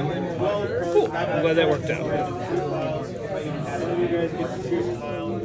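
Playing cards are shuffled by hand.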